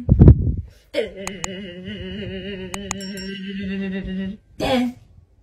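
A dog howls in a low, steady tone.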